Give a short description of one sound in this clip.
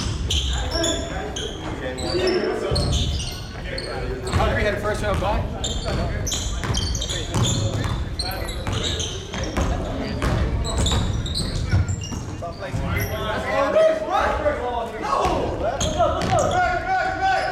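Young men shout to one another across a large echoing gym.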